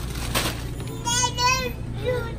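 A toddler babbles in a high voice nearby.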